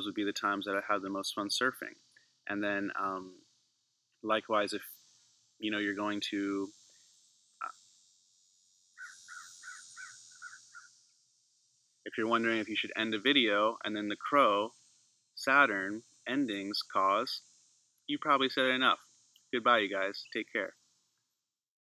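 A man talks calmly and close to the microphone.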